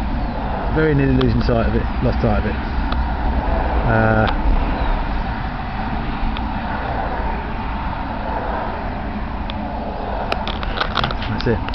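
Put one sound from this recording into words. Wind blows across an open field and buffets the microphone.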